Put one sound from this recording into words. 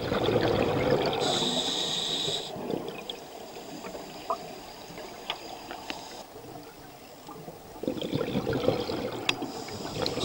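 Air bubbles gurgle and rush from a diver's breathing gear underwater.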